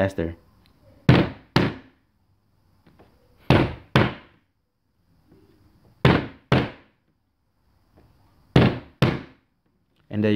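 Sharp hand claps come in pairs, again and again, close by.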